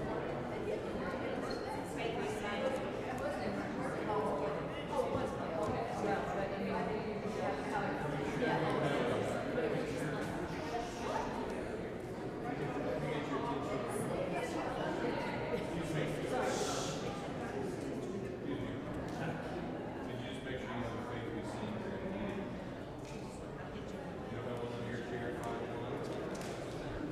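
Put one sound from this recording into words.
A choir and congregation sing together in a large echoing hall.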